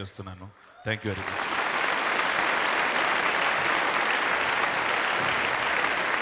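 A large crowd applauds and cheers in a big hall.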